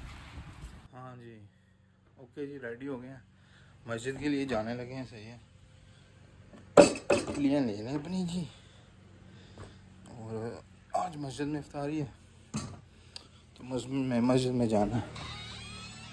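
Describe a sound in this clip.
A young man talks calmly nearby.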